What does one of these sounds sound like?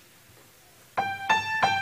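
A piano plays loudly in a reverberant hall.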